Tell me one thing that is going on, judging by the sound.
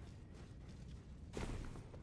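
Footsteps run quickly on stone steps.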